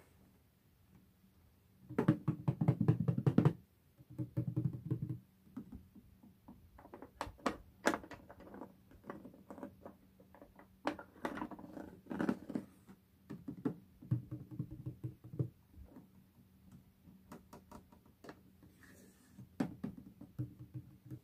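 Fingers rub and tap on a wooden box lid.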